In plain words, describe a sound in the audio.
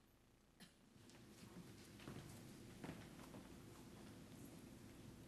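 Handbells ring out in a melody in a large echoing hall.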